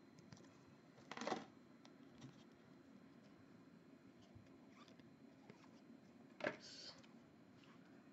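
Trading cards rustle and slide against each other as they are handled close by.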